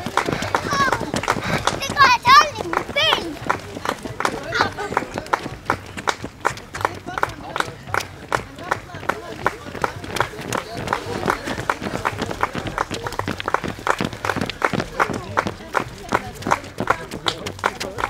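Running shoes slap rhythmically on a paved path.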